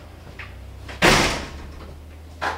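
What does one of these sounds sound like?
A door shuts with a thud.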